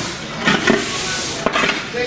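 A shovel scrapes on a paved path.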